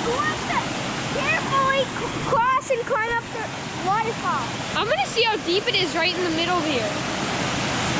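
A young boy talks excitedly nearby.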